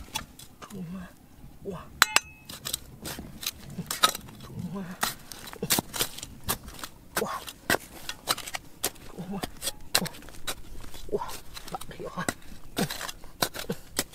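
Loose stones and grit clatter as they are knocked aside.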